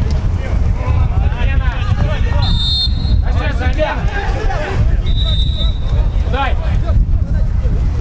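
Young men shout to each other across a pitch.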